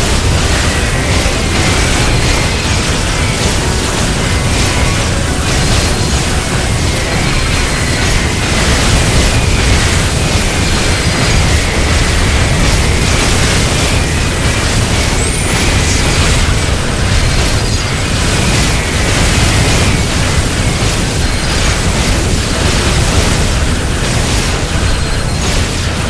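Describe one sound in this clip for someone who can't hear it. Rapid laser shots fire continuously in a video game.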